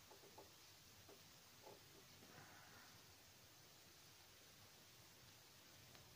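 Thin wire rustles and clicks as it is twisted.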